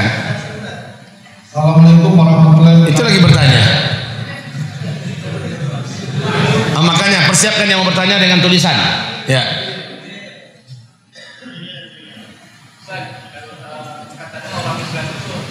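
A middle-aged man preaches with animation into a microphone, his voice echoing slightly in a hall.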